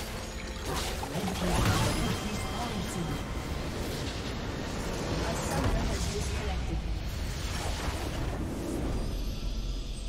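Game spells and weapons clash and burst in a loud battle.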